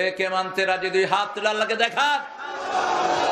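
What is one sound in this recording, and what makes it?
A man chants loudly through a microphone and loudspeakers.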